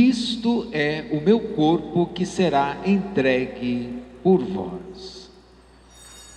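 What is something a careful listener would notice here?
A crowd sings in a large echoing hall.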